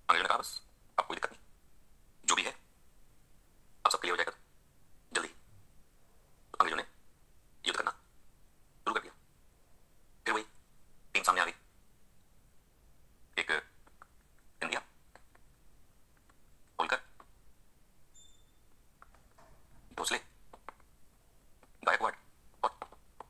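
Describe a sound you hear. A man lectures calmly through a small loudspeaker.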